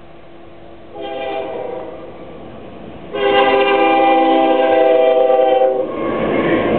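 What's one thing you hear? A train horn blasts loudly.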